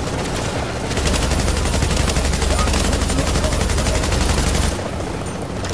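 Rapid gunfire rattles nearby.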